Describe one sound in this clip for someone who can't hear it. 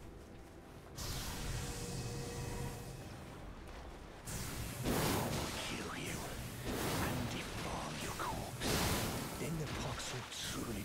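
Magical sword blasts whoosh and crackle loudly.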